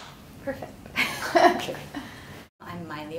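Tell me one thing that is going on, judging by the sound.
A woman laughs softly close by.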